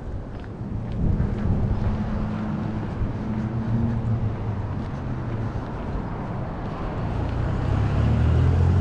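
A car engine rumbles as it approaches.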